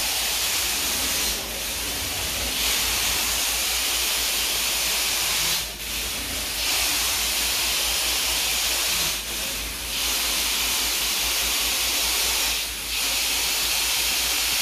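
A carpet extraction wand sucks with a loud, steady hissing roar that dips briefly with each stroke.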